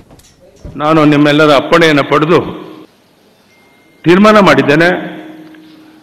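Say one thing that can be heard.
An elderly man speaks forcefully into a microphone in a large echoing hall.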